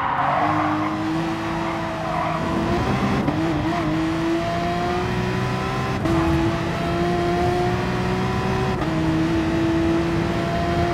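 A racing car engine roars at high revs, its pitch rising steadily and dropping sharply at each gear change.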